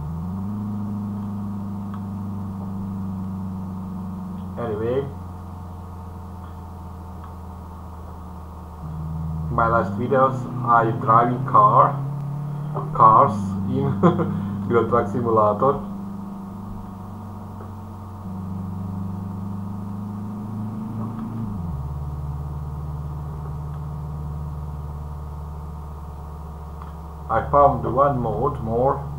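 A car engine hums steadily, rising and falling in pitch as gears change.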